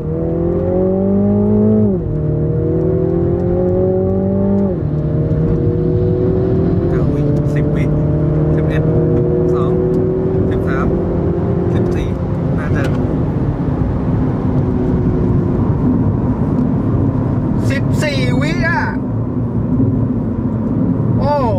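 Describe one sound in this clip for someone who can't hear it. A car engine revs hard, rising in pitch and dropping with each gear change.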